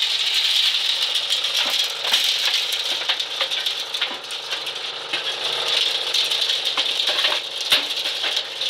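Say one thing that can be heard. A hand-cranked corn sheller whirs and rattles steadily.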